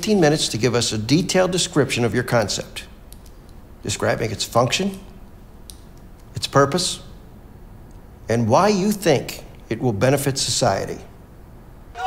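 A man speaks calmly and clearly, pausing between phrases.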